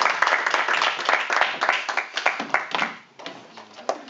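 An audience applauds loudly, then the clapping stops.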